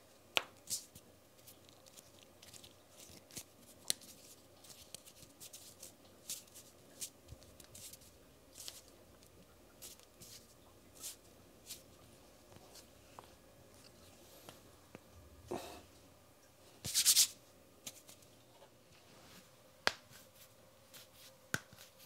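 Skin brushes and taps lightly close by.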